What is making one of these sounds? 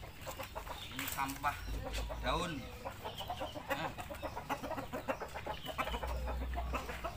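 Chickens cluck and peck busily at grain.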